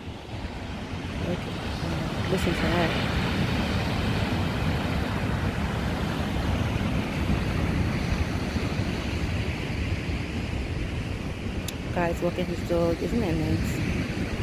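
Strong wind blows outdoors.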